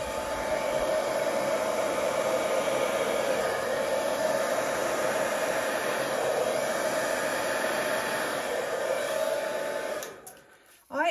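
A heat gun blows with a steady, loud whoosh.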